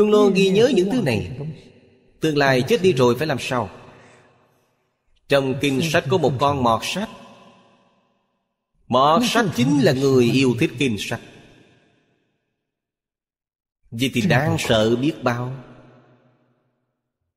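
An elderly man speaks calmly and warmly into a close microphone, in short phrases with pauses.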